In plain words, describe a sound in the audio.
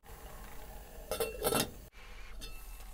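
A metal lid clatters onto a pot.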